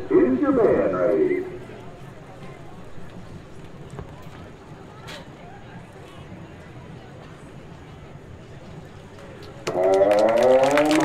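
A marching band's brass plays loud sustained chords outdoors.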